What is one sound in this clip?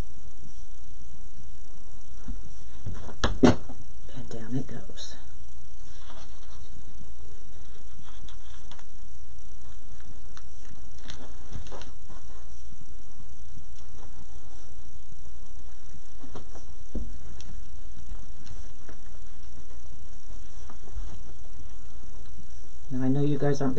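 Fabric and stiff material rustle softly as hands handle them.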